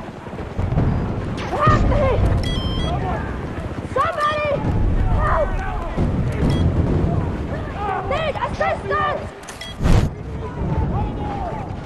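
Explosions and gunfire rumble in a battle nearby.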